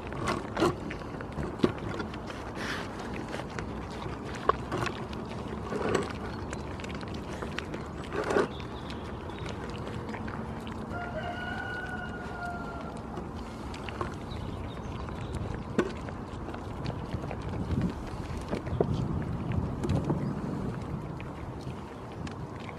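Goats munch and lick food off a board close by.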